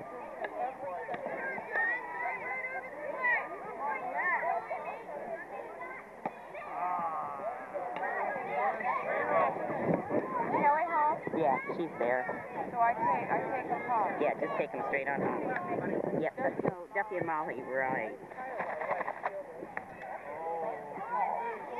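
Children and adults chatter and call out outdoors.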